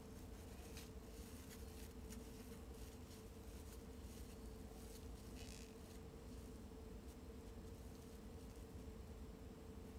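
A hand rubs softly against skin close by.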